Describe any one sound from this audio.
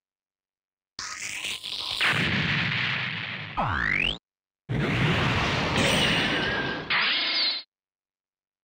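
Blasts and explosions roar in bursts.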